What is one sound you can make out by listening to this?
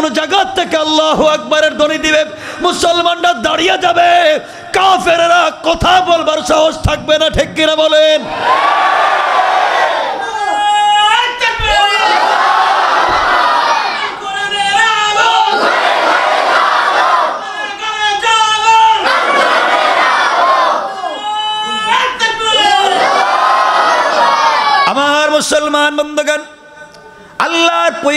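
A young man chants in a melodic voice through a microphone, loud and echoing.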